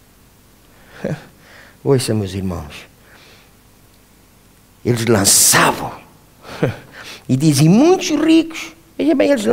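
A middle-aged man speaks with animation into a microphone in an echoing hall.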